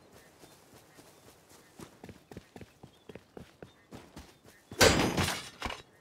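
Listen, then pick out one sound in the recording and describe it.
Footsteps run over dirt and grass.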